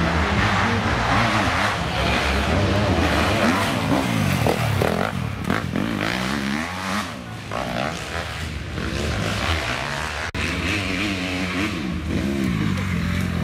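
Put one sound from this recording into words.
A dirt bike engine revs loudly up and down close by.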